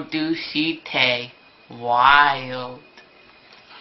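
A young person reads aloud close by, in a lively voice.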